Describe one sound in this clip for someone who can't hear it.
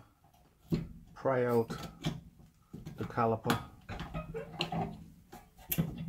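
Metal parts clink as a brake caliper is pulled off.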